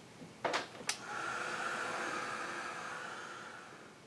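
A spray can hisses steadily, then slowly fades.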